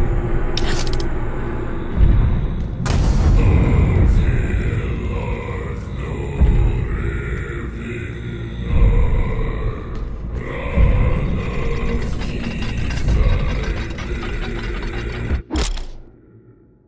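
Heavy game music with rumbling bass plays loudly, then cuts off.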